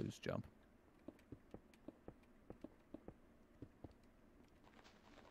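Footsteps tap lightly in a game.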